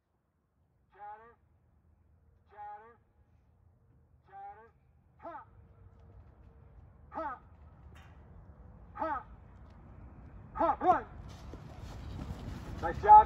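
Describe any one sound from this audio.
A man calls out short rhythmic commands loudly outdoors.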